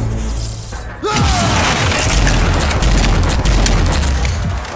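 Weapons fire rapidly with loud booming bursts.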